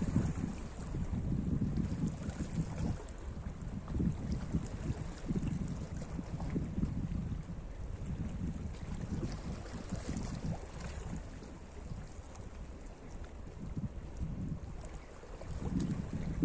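Wind blows outdoors, rumbling across the microphone.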